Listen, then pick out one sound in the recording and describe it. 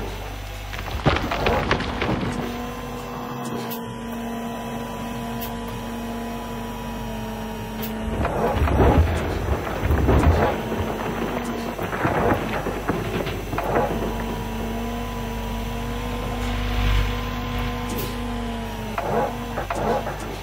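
A diesel excavator engine hums steadily.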